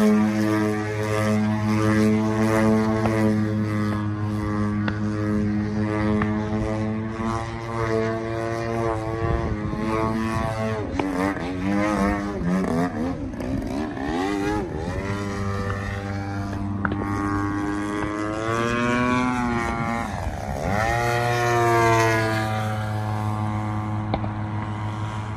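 A small propeller engine drones overhead, its pitch rising and falling as the aircraft turns and dives.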